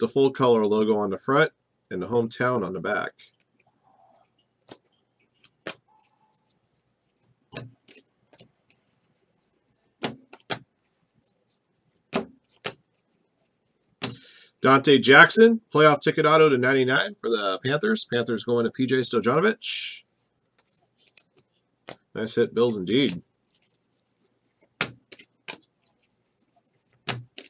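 Trading cards slide and tap as a stack is flipped through by hand.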